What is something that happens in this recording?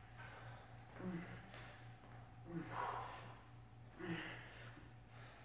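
A man grunts with effort during a heavy lift.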